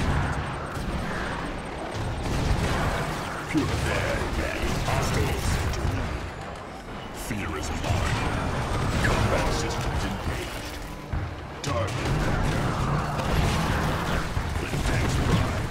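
Laser beams zap and crackle in a battle.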